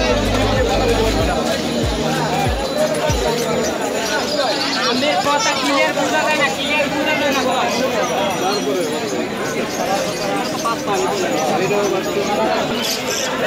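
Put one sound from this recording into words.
Several men and women talk nearby.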